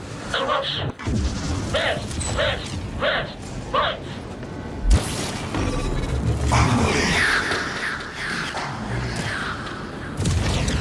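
A spaceship engine rumbles and roars.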